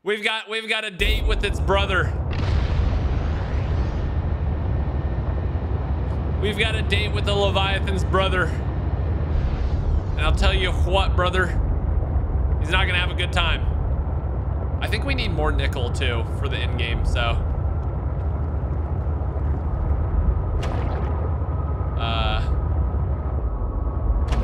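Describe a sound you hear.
A deep underwater rumble drones steadily.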